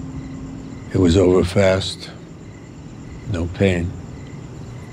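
An older man answers in a low, calm voice nearby.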